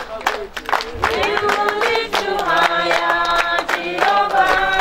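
A crowd of women and men sing together loudly.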